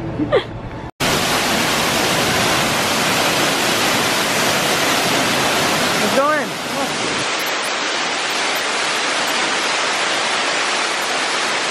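A waterfall roars and splashes steadily.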